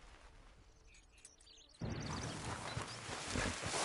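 Brush rustles as a horse pushes through it.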